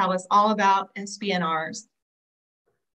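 A woman speaks with animation through an online call.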